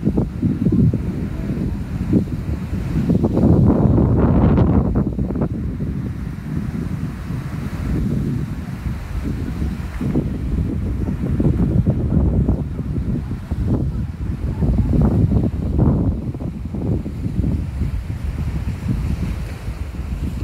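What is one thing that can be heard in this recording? Wind blows hard against the microphone outdoors.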